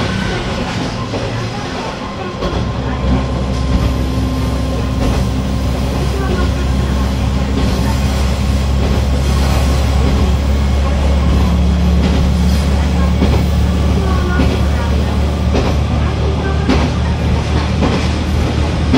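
A train's diesel engine hums low and steady, growing louder after it picks up speed.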